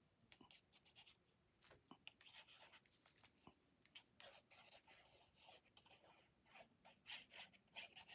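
A glue pen squeaks and scrapes across paper.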